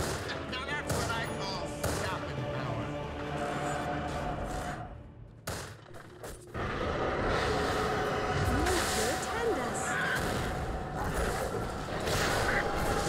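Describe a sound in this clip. Game spell effects crackle and whoosh during a fight.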